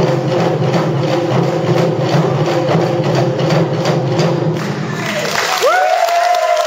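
Large drums pound in a fast, loud rhythm in an echoing hall.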